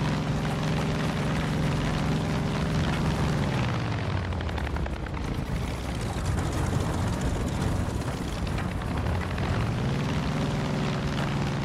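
A small propeller plane's engine drones steadily, its pitch dipping and rising again.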